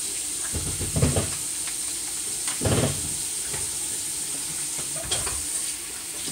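Dishes clink and knock as they are handled.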